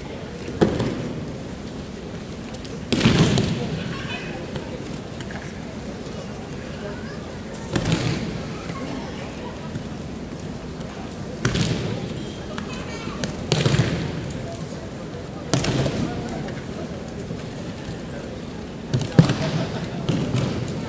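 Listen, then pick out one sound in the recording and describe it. Bodies thud heavily onto a padded mat, again and again, in a large echoing hall.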